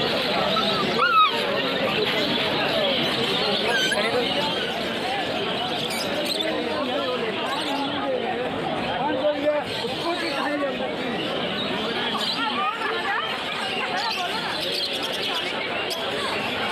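A crowd chatters busily all around outdoors.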